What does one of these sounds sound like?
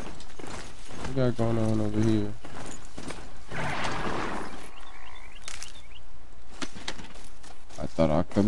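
A heavy mechanical beast's footsteps thud as it runs.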